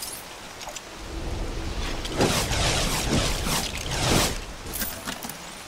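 A magical swirling whoosh rises and crackles with sparkles.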